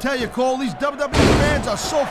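A body slams onto a wrestling mat with a heavy thud.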